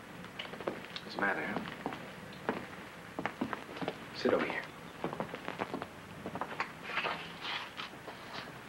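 A woman talks quietly.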